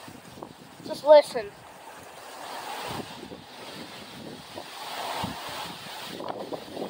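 Tree branches and leaves thrash and rustle in the wind.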